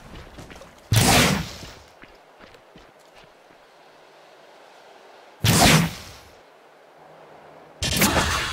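A magical whoosh bursts out loudly, then fades.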